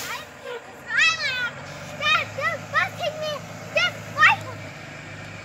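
A young girl talks excitedly.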